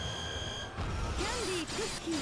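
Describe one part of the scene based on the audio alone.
A magical energy blast whooshes and crackles.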